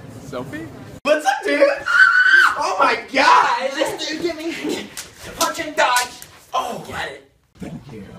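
Two teenage boys shout and laugh with excitement.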